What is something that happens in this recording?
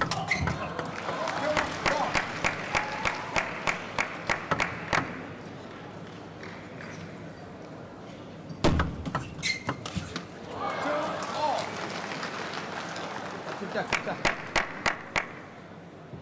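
A table tennis ball clicks sharply back and forth off paddles and the table.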